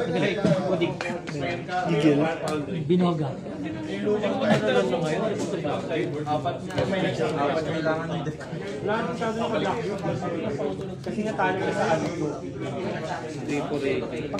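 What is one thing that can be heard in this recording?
Playing cards are shuffled and placed softly on a mat.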